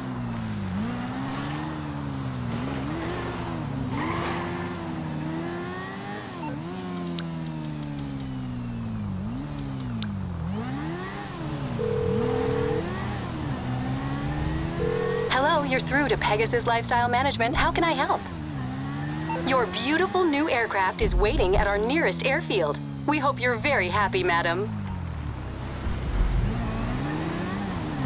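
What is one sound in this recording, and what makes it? A motorcycle engine revs up and down, rising and falling in pitch.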